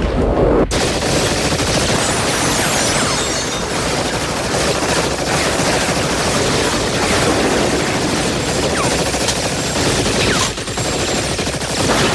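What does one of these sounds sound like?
Automatic rifles fire in bursts.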